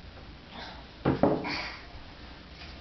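A plastic cup knocks down onto a wooden desk.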